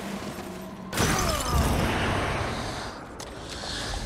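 A loud magical whoosh bursts out and roars.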